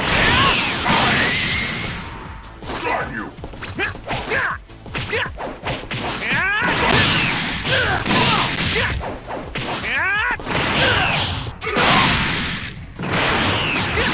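An energy blast whooshes and crackles in a video game.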